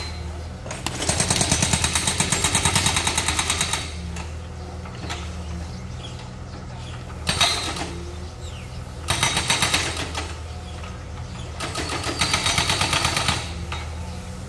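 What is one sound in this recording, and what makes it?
A hydraulic breaker hammers rapidly on brick rubble.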